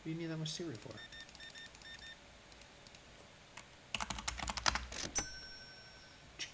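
Card reader keys beep as a total is typed in.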